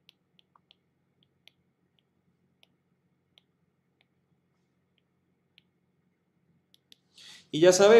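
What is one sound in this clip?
A pen taps and scratches lightly on a tablet.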